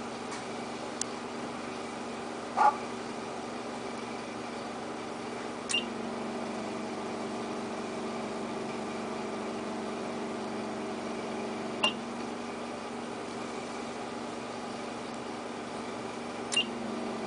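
A bonding tool clicks softly now and then.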